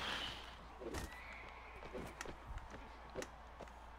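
A horse collapses heavily to the ground.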